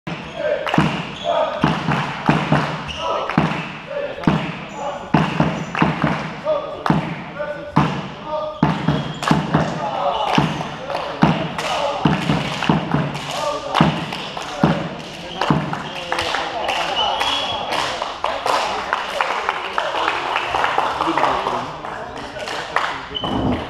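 Young men call out and shout to each other across the hall.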